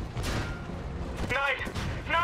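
A large explosion booms nearby.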